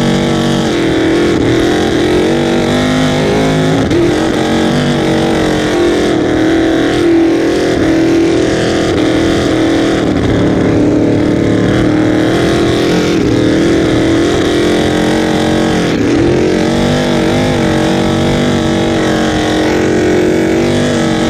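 Water rushes and sprays against a speeding hull.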